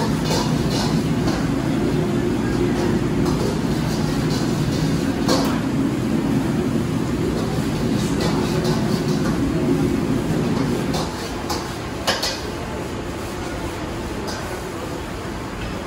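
A metal spatula clanks and scrapes in a wok.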